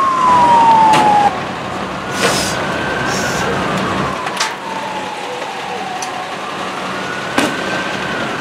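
Sharp bangs of tear gas launchers go off now and then.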